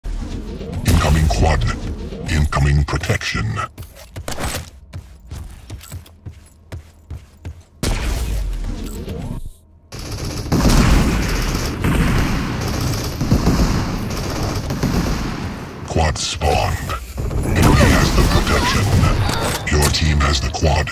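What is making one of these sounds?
A video game's lightning beam weapon crackles as it fires.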